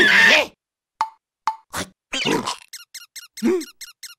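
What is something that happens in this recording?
A high, cartoonish male voice babbles nervously in short bursts.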